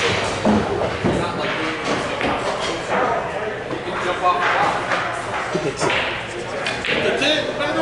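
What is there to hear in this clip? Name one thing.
Billiard balls click sharply as a cue strikes them.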